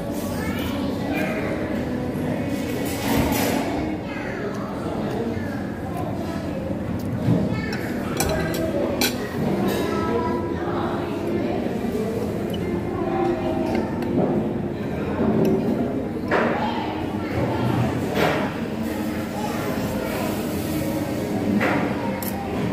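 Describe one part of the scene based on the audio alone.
A man slurps noodles loudly, close by.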